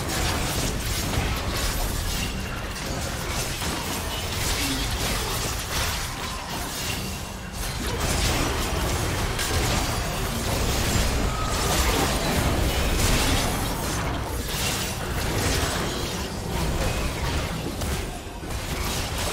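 Fighting game characters' spells crackle and boom in quick bursts.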